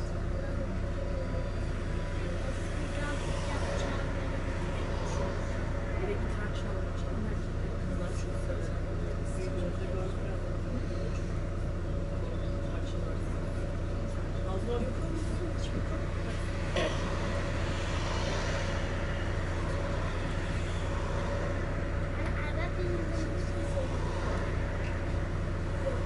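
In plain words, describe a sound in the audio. A bus engine hums and rumbles steadily while idling.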